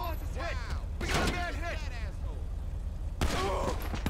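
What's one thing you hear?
A car windshield cracks from a bullet.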